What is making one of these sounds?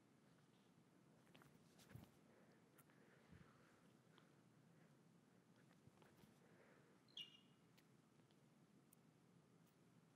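Shoes scuff and tap softly on a hard floor.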